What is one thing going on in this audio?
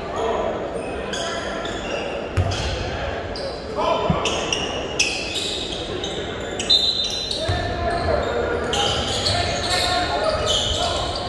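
Players call out and shout in a large echoing gym.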